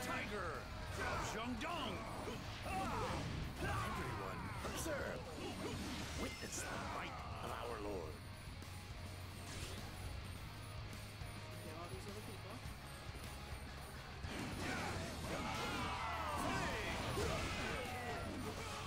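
Swords clash and strike in quick blows.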